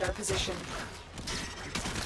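A blade whooshes through the air in a quick slash.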